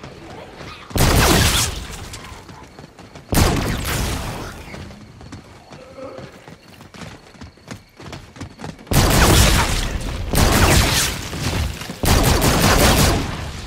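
A gun fires loud bursts of shots.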